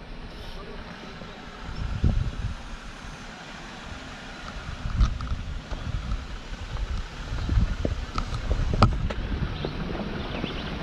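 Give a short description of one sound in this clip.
An off-road vehicle's engine rumbles low as it creeps down a rocky track toward the listener.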